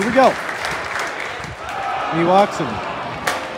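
Men in the crowd shout and cheer loudly.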